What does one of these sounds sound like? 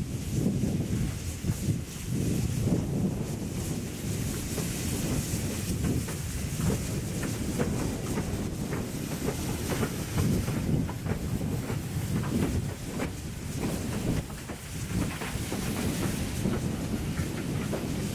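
A steam locomotive chuffs heavily as it rolls slowly past, close by.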